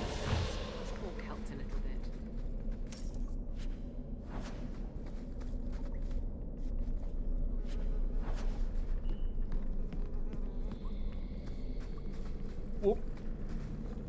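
Footsteps crunch on gravel as a character walks.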